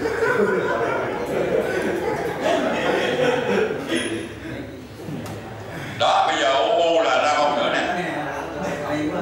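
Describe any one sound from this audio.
A man speaks with animation in a room.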